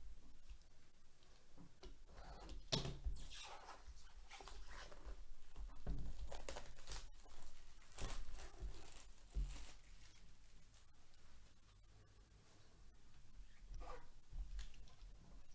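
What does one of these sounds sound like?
Cardboard packaging rustles and scrapes as it is handled and opened.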